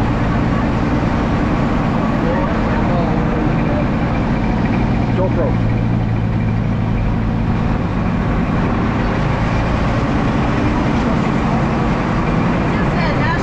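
A vehicle engine rumbles steadily while driving along a bumpy dirt track.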